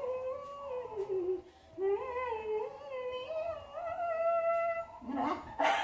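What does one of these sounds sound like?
A woman sings close by in a wavering, drawn-out voice.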